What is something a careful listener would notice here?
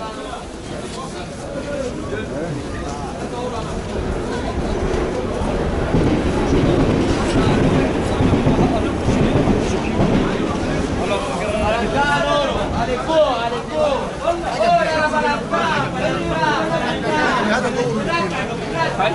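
A crowd murmurs and chatters all around.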